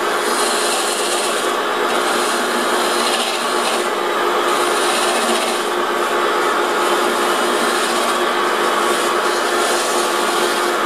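A lathe hums steadily.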